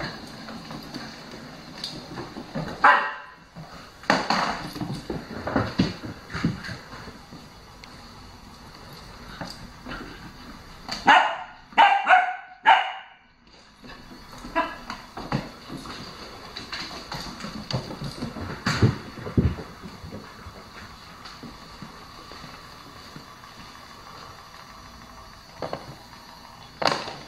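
A small toy ball rolls and rattles across a wooden floor.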